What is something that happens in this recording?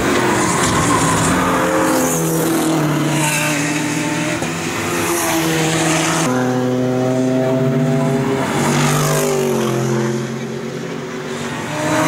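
Racing car engines roar loudly as cars speed past, their pitch rising and falling with gear changes.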